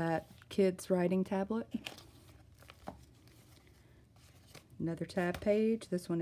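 Stiff paper pages rustle and flap as they are turned.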